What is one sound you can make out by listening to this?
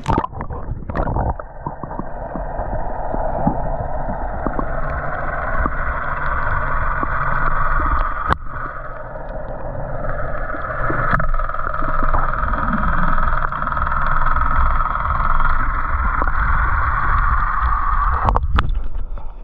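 Underwater, water rushes and gurgles in a muffled rumble.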